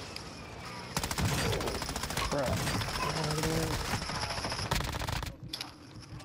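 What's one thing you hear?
A rifle fires rapid bursts.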